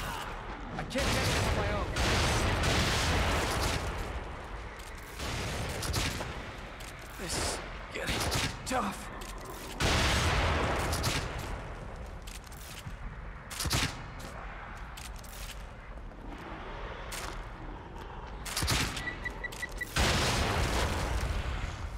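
An explosion booms and roars with flames.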